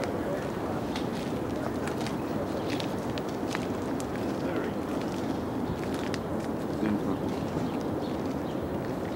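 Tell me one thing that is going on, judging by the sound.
Footsteps crunch slowly on a gravel path.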